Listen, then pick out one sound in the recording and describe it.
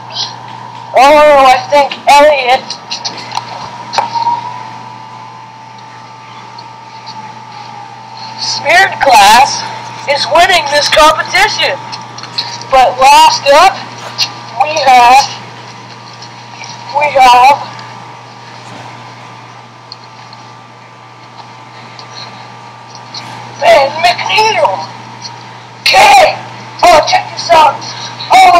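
A young woman's voice calls out in short, high bursts through a small loudspeaker.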